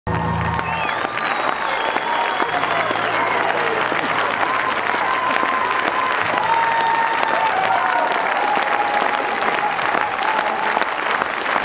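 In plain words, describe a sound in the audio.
A crowd of men and women cheers and whoops.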